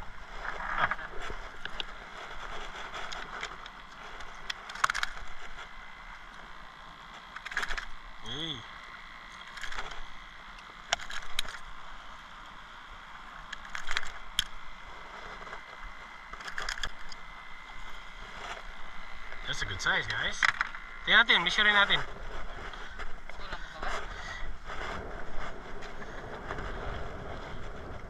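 Water laps against a boat hull.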